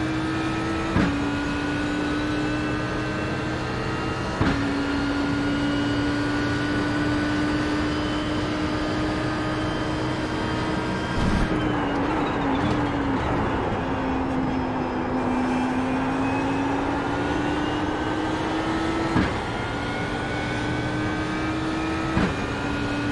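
A racing car's gearbox clunks sharply with each gear change.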